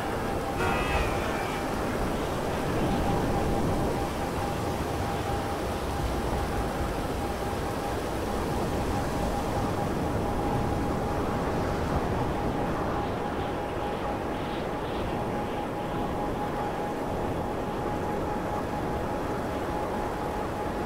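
A jet-powered hoverbike engine roars steadily with a high whine.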